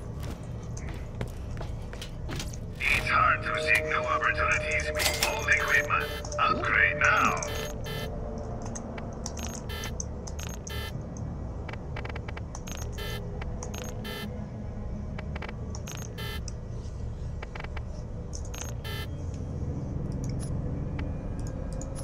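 Short menu clicks and beeps sound now and then.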